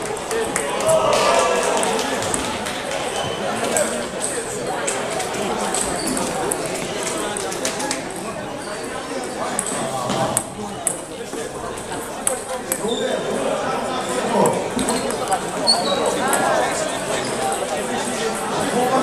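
Many people chatter across a large echoing hall.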